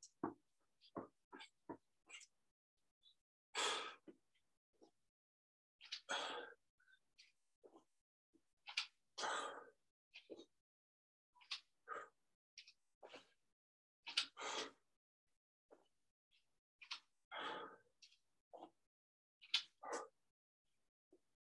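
Feet thump on the floor during lunges.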